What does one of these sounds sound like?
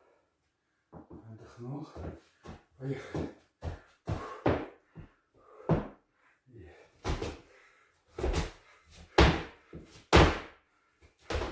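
Feet shuffle and stamp quickly on a hard floor.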